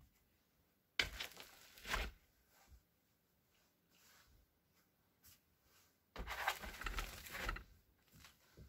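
A plastic roofing sheet rustles and crinkles in bursts.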